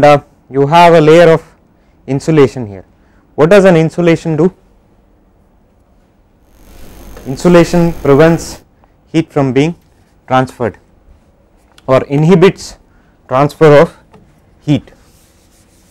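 A man lectures through a clip-on microphone, speaking calmly in short bursts.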